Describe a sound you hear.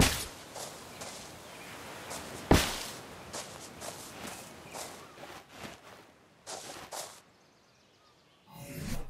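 Waves wash gently onto a shore.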